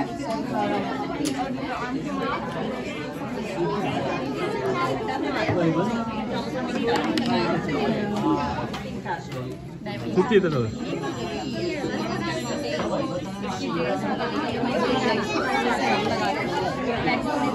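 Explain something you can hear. Many young children and adults chatter and call out close by.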